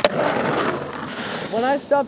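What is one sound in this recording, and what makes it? A snowboard scrapes across snow.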